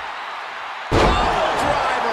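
A heavy body slams onto a wrestling ring mat with a loud thud.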